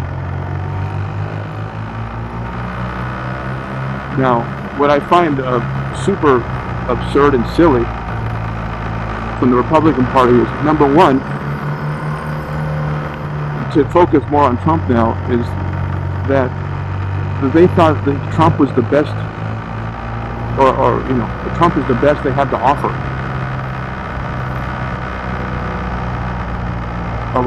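A motorcycle engine hums steadily at highway speed.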